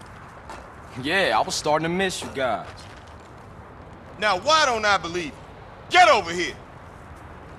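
A second man answers.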